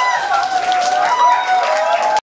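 A young man sings loudly into a microphone.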